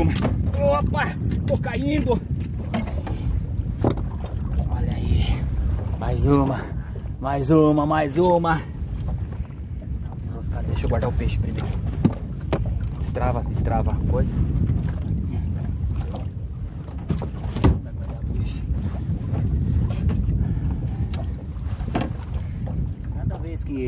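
Waves splash against a small boat's hull.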